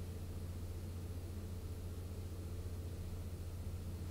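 A brush strokes softly across paper.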